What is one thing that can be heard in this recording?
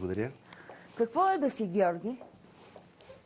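A woman speaks brightly, close to a microphone.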